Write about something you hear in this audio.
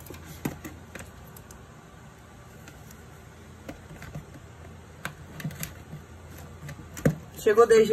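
Scissors snip through cardboard.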